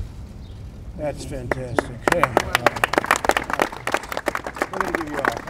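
A crowd applauds and cheers outdoors.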